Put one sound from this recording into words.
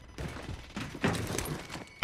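A rifle's metal parts clack as the rifle is handled.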